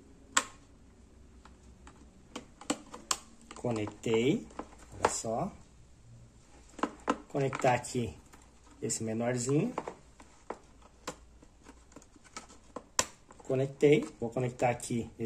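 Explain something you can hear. Plastic wire connectors click and rattle as they are handled.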